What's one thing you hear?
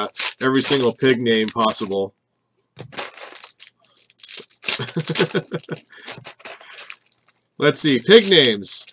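A foil wrapper of a trading card pack crinkles in hands.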